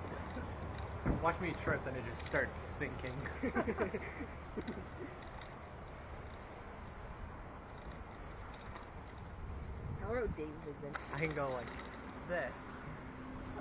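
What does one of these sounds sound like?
A young man talks loudly nearby, outdoors.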